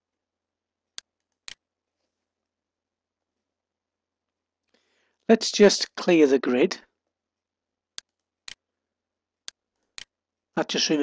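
A computer mouse clicks sharply a few times.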